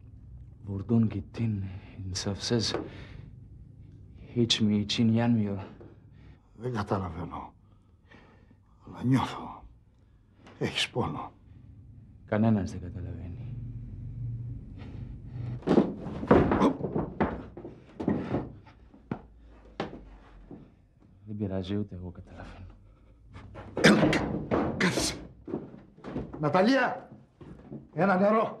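A man speaks with emotion, close by.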